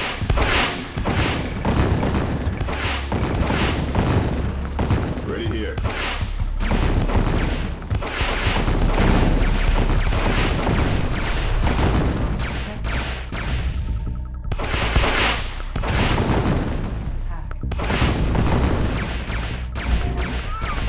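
Explosions boom and crackle in a game battle.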